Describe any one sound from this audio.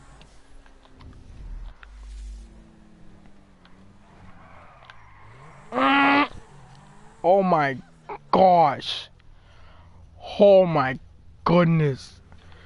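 A sports car engine hums and revs.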